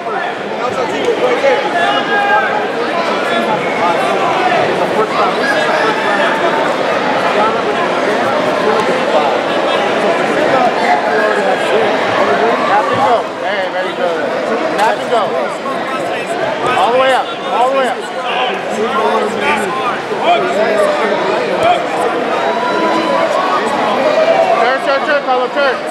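A large crowd of men and women chatters and shouts, echoing through a big hall.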